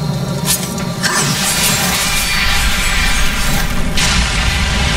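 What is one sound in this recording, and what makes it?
Flames roar.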